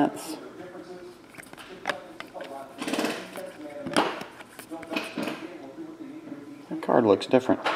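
Trading cards rustle and slide against each other in a hand.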